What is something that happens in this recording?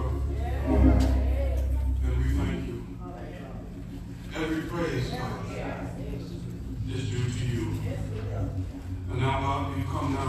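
A man speaks slowly and earnestly into a microphone in a reverberant hall.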